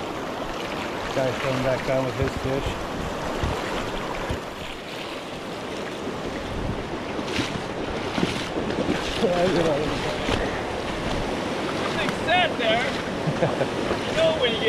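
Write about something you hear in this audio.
A shallow stream rushes and gurgles over rocks close by.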